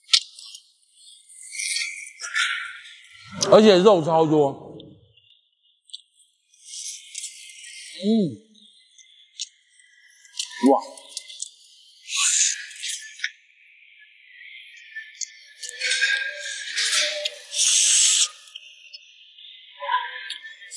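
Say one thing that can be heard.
Two young men slurp and chew shellfish noisily, close by.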